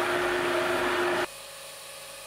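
A gas torch flame roars steadily.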